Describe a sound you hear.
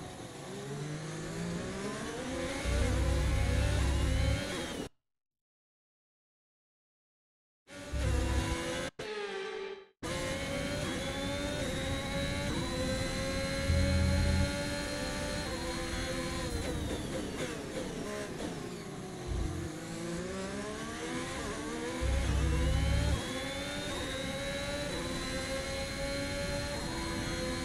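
A racing car engine whines loudly, rising and falling in pitch as gears shift.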